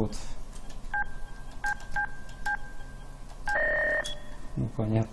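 Keypad buttons beep with short high tones.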